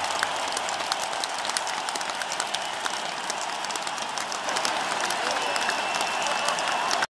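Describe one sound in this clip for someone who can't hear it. A large crowd cheers and claps in a big echoing arena.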